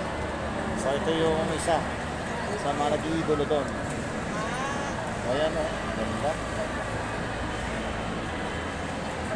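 A crowd murmurs in the background of a large echoing hall.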